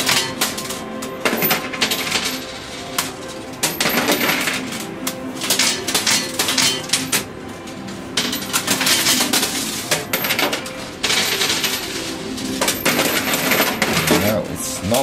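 Coins clink and rattle as a pusher machine shoves them across its tray.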